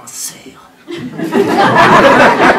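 An audience laughs and cheers loudly in an echoing hall.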